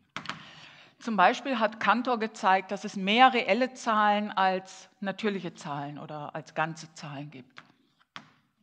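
A woman speaks calmly and clearly in a large room.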